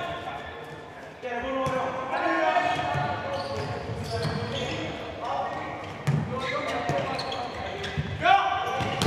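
Shoes squeak sharply on a hard indoor court.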